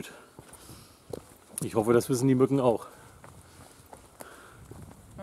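Footsteps crunch on a forest trail.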